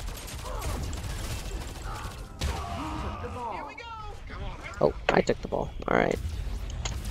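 Energy guns fire in sharp bursts.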